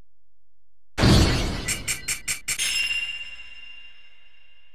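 A game score counter ticks rapidly up to a chime.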